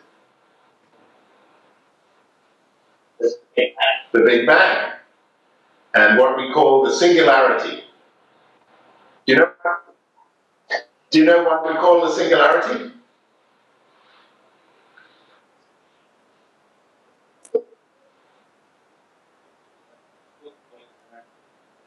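A middle-aged man laughs softly.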